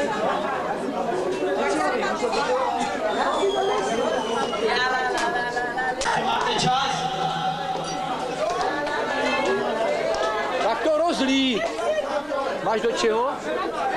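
Glass bottles and glasses clink.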